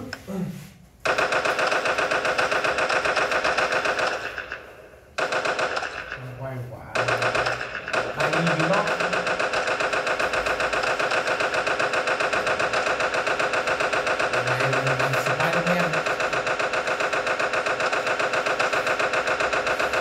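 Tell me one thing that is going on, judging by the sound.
Game music plays from a small tablet speaker.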